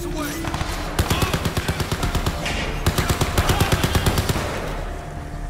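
A machine gun fires in rapid bursts.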